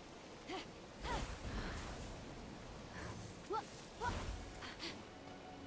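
A game character's wings whoosh while gliding.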